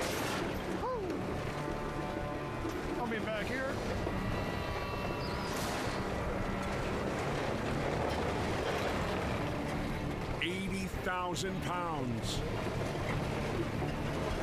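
A heavy truck engine roars and revs.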